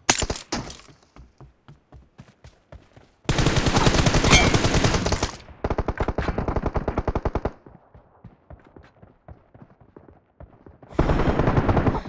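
Footsteps run over the ground.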